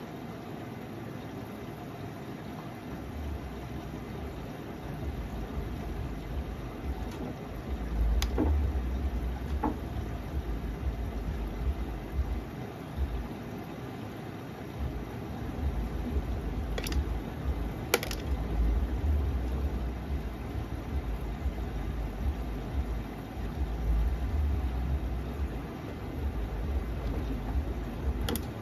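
A washing machine drum turns with a low rumble.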